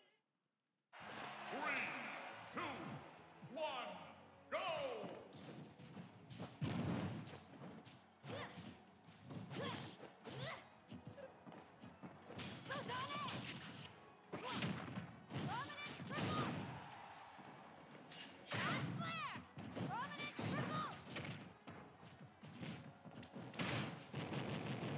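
Fighting game sound effects of hits and blasts clash and thud.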